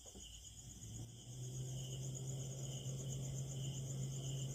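A refrigerator fan hums steadily.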